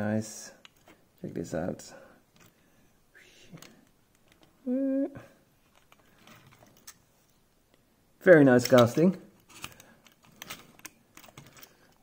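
Small plastic parts click and snap together as a toy ladder is fitted onto a toy truck.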